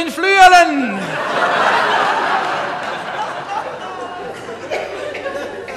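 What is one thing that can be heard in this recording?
A large audience applauds in a hall.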